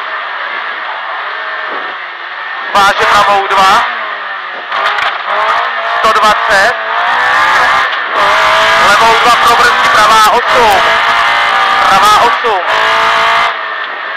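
A rally car engine roars loudly and revs up and down from inside the car.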